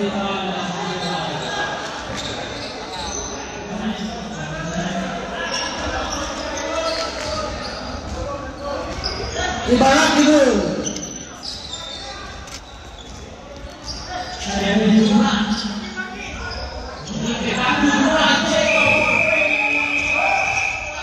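A crowd of young people chatters and calls out in a large echoing gym.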